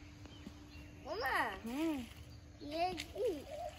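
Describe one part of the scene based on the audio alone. A young child calls out in a high voice close by.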